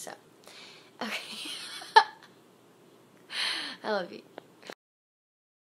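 A young woman laughs loudly close to a phone microphone.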